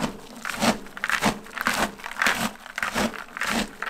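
A spoon scrapes and stirs inside a plastic bucket.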